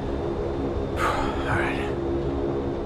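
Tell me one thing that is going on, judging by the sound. A man sighs.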